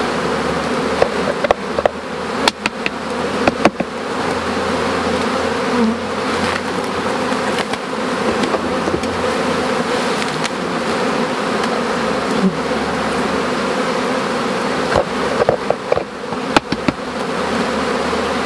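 Wooden hive frames knock and scrape as they are lifted and handled.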